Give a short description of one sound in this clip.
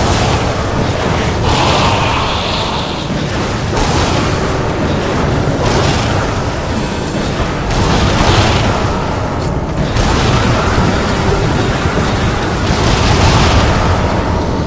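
Explosions burst with loud booms.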